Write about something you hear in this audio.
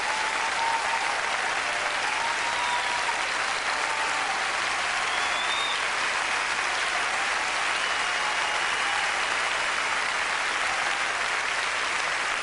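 A woman sings into a microphone on a stage.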